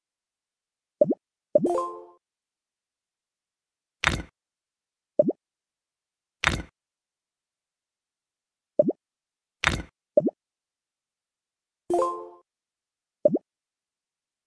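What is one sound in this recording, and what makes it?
Short popping clicks and little chimes sound now and then as blocks snap into place.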